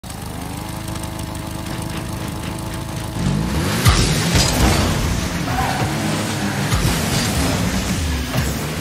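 A game car's engine hums and then roars as it boosts forward.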